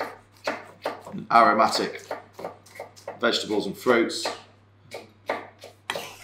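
A knife chops through peppers on a wooden board.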